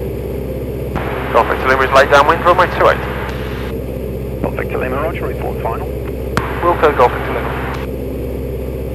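A man speaks calmly over a headset intercom.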